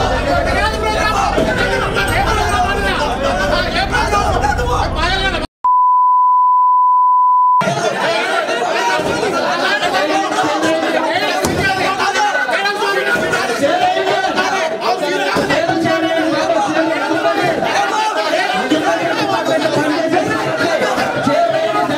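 Men argue loudly over one another in a noisy crowd.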